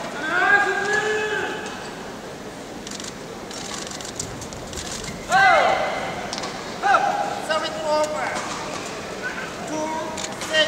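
Shoes squeak sharply on a hard court floor in a large echoing hall.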